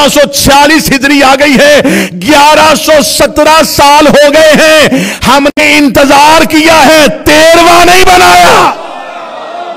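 A man preaches loudly and passionately into a microphone.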